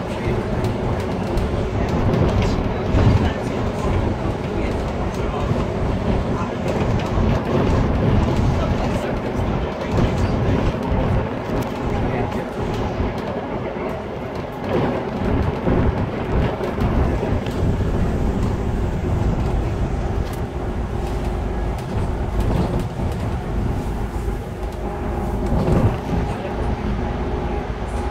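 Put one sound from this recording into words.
A bus engine hums steadily as the bus drives along.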